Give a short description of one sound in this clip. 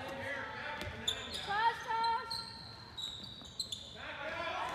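A handball thuds as it bounces and is caught.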